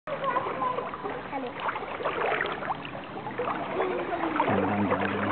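Water splashes gently in a pool.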